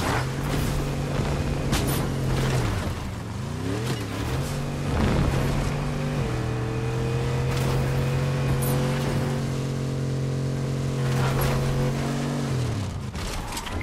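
A game car's engine roars steadily, its pitch shifting as it drives.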